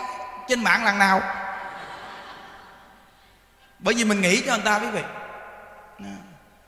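A man speaks calmly into a microphone in a room with echo.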